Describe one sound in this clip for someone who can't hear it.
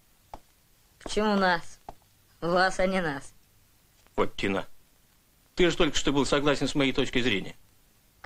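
A boy speaks with animation.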